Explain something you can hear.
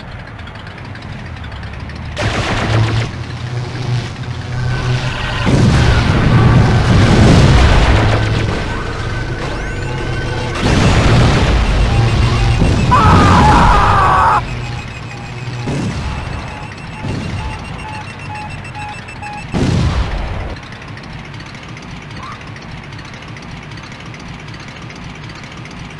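A game car engine hums steadily.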